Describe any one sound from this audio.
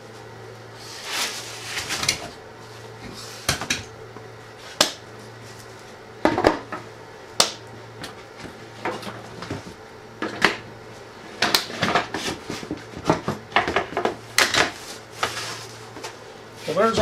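Metal clamps clatter and click against wood.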